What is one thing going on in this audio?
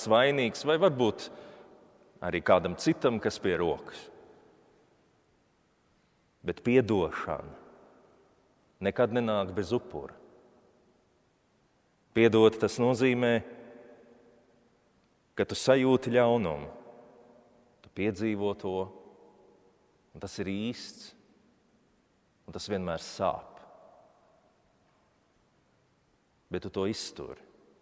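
A man speaks slowly and solemnly in short phrases, echoing in a large reverberant hall.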